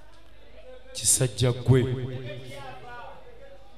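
A man speaks tensely, close by.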